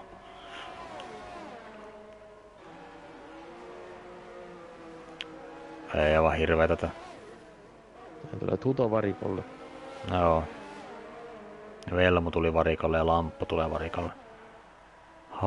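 Racing car engines whine at high revs and shift pitch as the cars pass.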